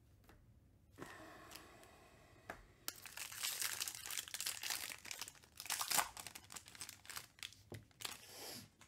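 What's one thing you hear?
A foil wrapper crinkles and tears loudly as a pack is ripped open.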